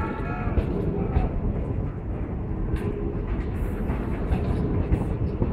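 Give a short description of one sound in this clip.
A passenger train rumbles past close by, its wheels clattering on the rails.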